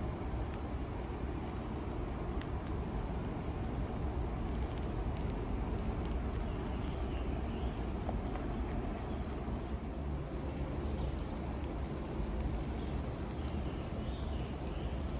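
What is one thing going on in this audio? Eggs sizzle and crackle in a frying pan.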